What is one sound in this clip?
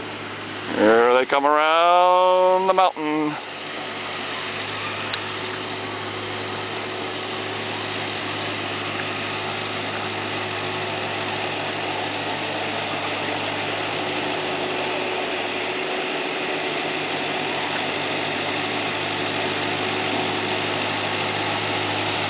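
A tractor engine putters steadily, growing louder as it comes closer.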